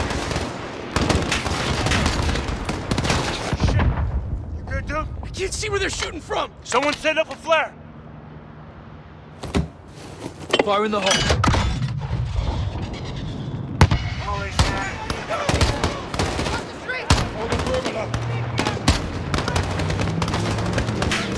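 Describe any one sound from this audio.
Gunshots crack rapidly and repeatedly, with loud echoing bangs.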